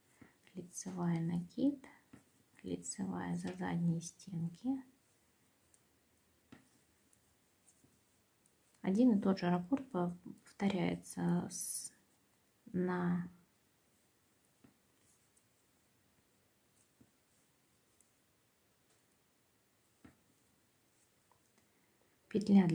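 Metal knitting needles click softly against each other.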